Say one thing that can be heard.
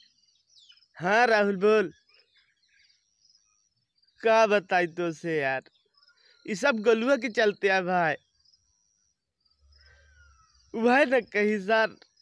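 A young man talks with animation on a phone, close by.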